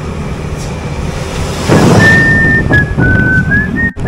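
A truck rumbles past.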